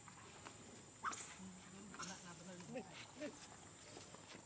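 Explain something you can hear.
A baby monkey squeaks and whimpers.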